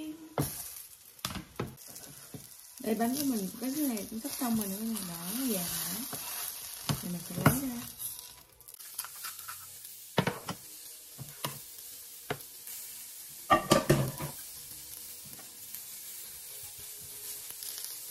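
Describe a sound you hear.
A crepe sizzles in a hot frying pan.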